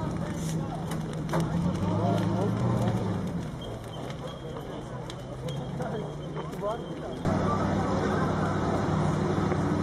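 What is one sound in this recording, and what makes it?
A large fire roars steadily.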